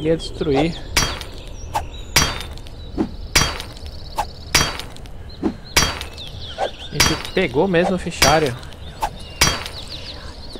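An axe strikes a metal shelf with sharp, repeated knocks.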